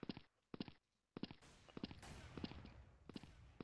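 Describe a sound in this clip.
A sniper rifle fires with a sharp crack.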